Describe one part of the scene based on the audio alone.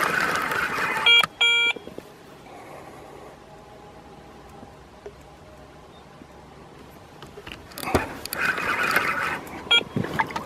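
A fishing reel clicks and whirs.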